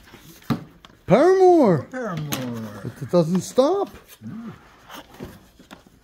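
Record sleeves slide and knock against each other in a cardboard box.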